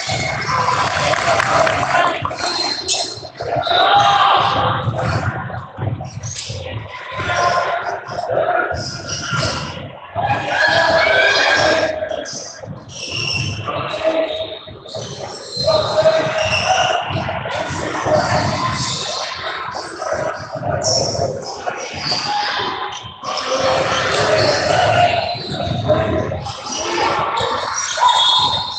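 Spectators talk and cheer in a large echoing gym.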